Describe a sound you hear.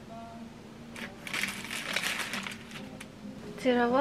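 A paper food wrapper crinkles and rustles in someone's hands.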